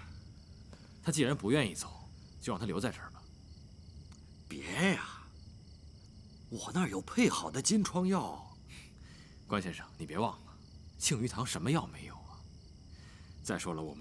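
A middle-aged man speaks with pleading emotion, close by.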